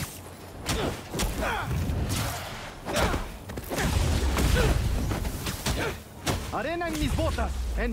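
Punches and thuds land in a fight.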